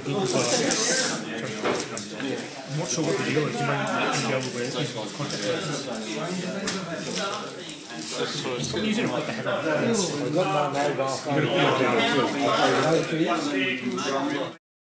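A man speaks calmly up close.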